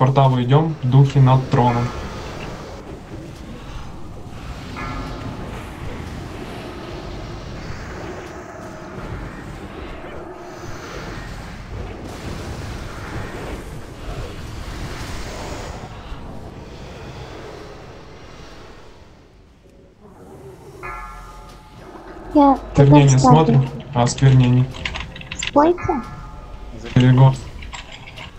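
Magic spells crackle and whoosh in a fight.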